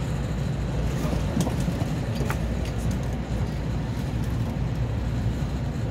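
A train starts moving and its wheels begin rolling on the rails.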